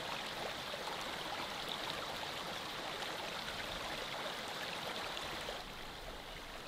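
Shallow water ripples and babbles over stones.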